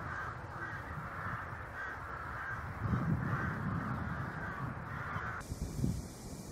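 Crows caw from the treetops.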